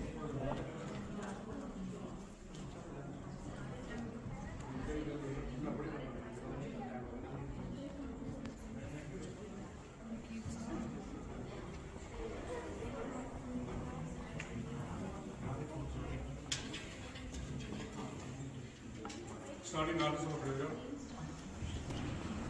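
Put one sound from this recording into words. Men and women chat in the background of an echoing hall.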